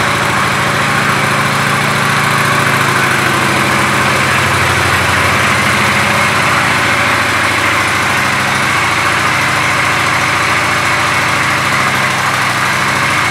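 A motorcycle engine idles with a steady, throbbing rumble.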